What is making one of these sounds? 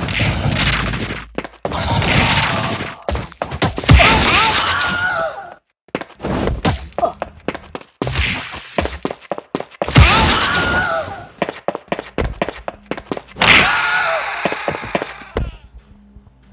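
Punches and kicks land with sharp thuds in a video game fight.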